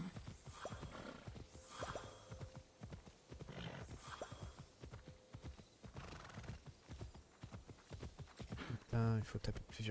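Horse hooves thud steadily on grass at a gallop.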